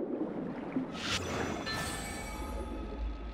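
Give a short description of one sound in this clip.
A magical sword slash rings out with a shimmering chime.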